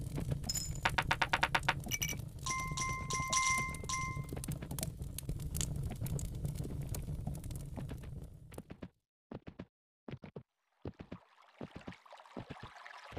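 A horse gallops with steady hoofbeats.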